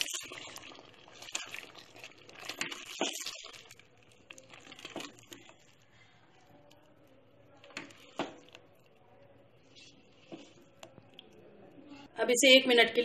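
A spatula scrapes and squelches through thick sauce in a pan.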